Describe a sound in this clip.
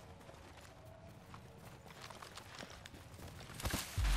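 Footsteps patter on grass and dirt.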